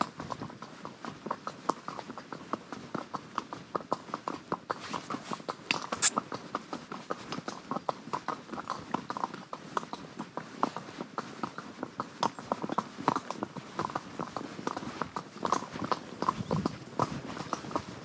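A horse's hooves clop steadily on a gravel track.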